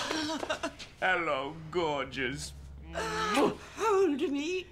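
An elderly woman shrieks and laughs with delight.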